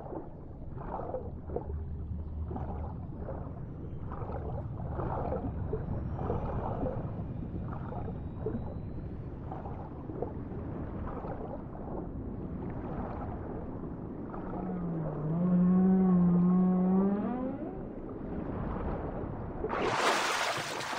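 A swimmer strokes through water, heard muffled from below the surface.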